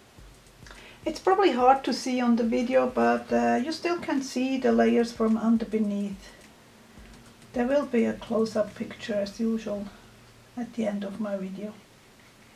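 An older woman speaks calmly close by.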